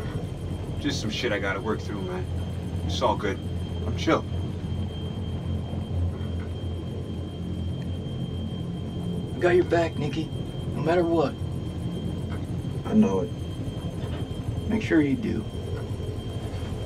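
A steady low engine rumble drones throughout.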